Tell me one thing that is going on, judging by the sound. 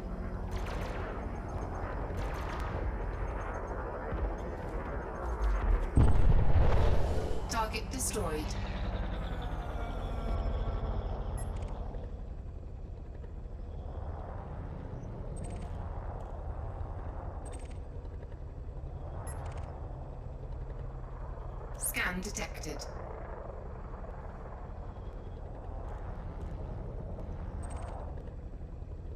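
A spaceship's engines hum low and steady.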